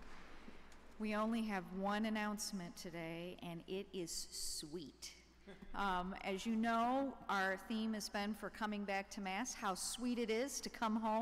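A woman sings into a microphone, her voice echoing through a large hall.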